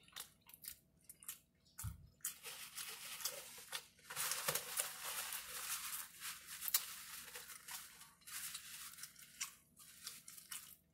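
A woman chews and smacks food loudly close up.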